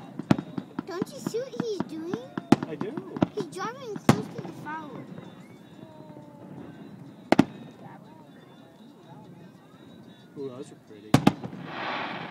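Fireworks bang and pop in the distance.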